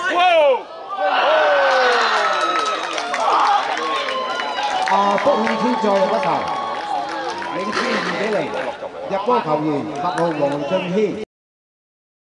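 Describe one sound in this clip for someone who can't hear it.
Young men shout and cheer close by after a goal.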